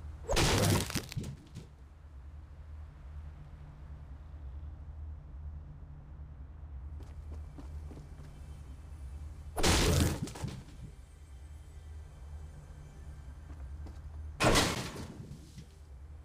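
A pickaxe strikes hard with a loud crack.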